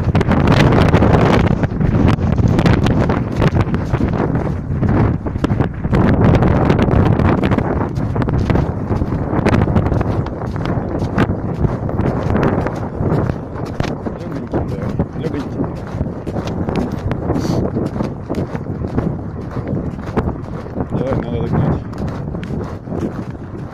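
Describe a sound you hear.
A horse's hooves crunch through deep snow at a steady walk.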